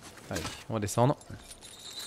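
A metal chain rattles and clinks.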